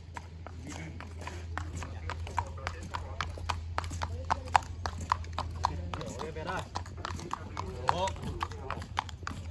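A horse's hooves clop on hard pavement at a steady walk.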